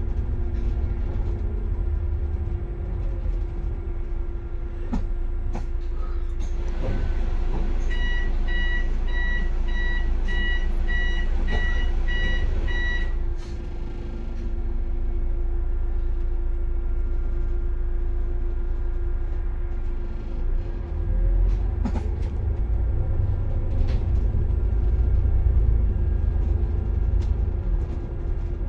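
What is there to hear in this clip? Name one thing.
A bus engine hums steadily from close by.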